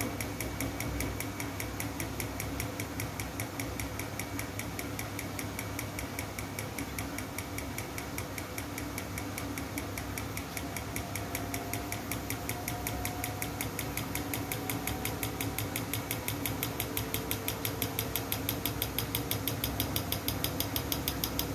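A washing machine clicks rapidly and evenly.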